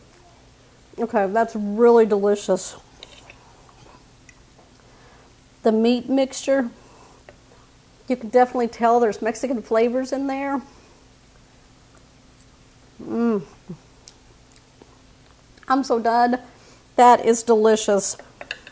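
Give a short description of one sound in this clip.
A middle-aged woman talks calmly into a close microphone.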